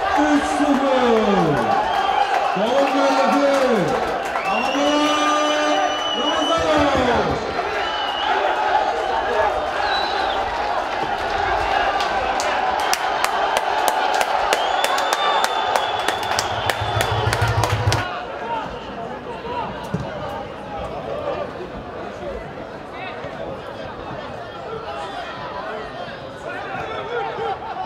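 A crowd cheers and chants in a large stadium.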